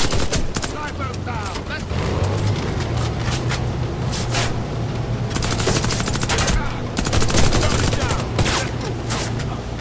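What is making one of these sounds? A helicopter's rotor thrums overhead.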